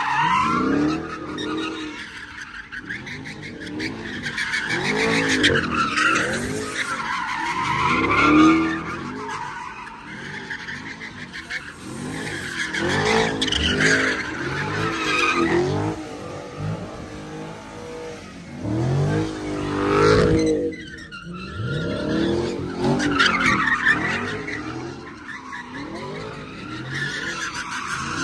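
A car engine revs hard and roars close by.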